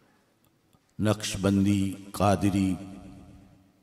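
A man chants loudly through a microphone, echoing in a large hall.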